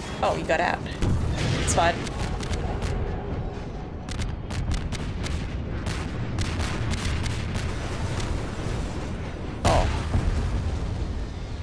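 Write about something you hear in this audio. A helicopter's rotor rumbles low and steady.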